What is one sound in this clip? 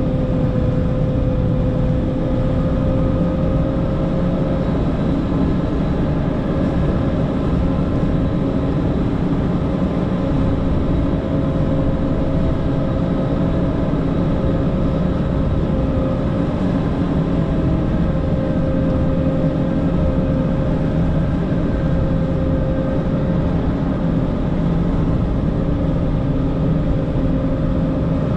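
A heavy diesel engine rumbles steadily, with a droning hum.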